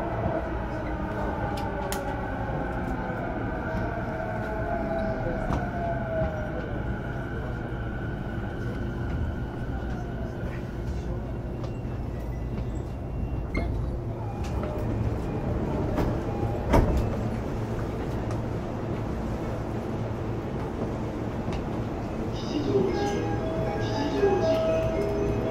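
An electric train's motor whines and slowly falls in pitch as the train rumbles along.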